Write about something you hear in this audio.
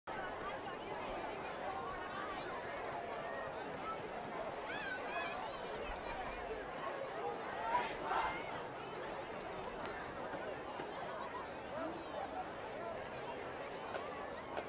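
A crowd of spectators chatters outdoors.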